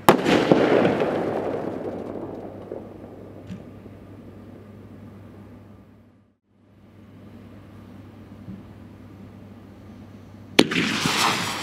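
A firework explodes with a loud bang.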